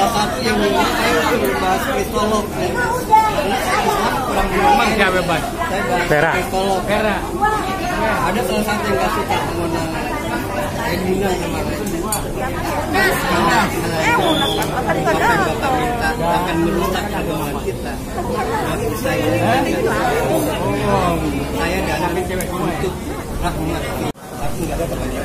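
Several women chatter and talk at once close by.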